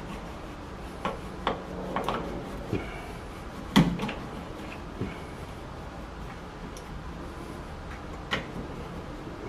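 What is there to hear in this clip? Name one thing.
A tool clicks and knocks against a plastic pipe.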